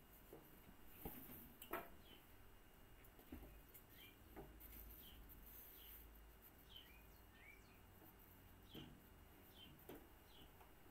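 Metal parts clink and knock.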